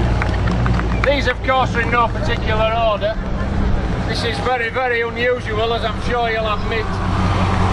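Men and women in a small crowd chat outdoors nearby.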